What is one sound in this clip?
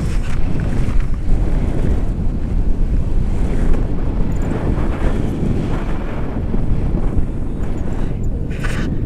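A man talks with animation close by, partly drowned by wind.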